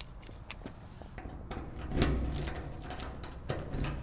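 A key clicks and rattles in a lock.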